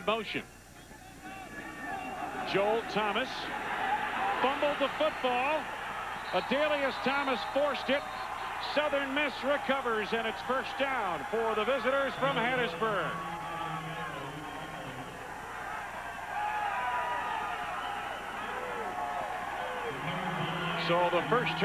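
A large crowd cheers and roars outdoors.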